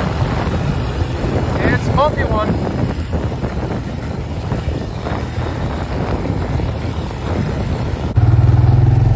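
Tyres crunch over a dirt trail.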